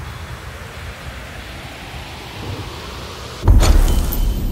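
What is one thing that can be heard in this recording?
Soft wind rustles through a forest.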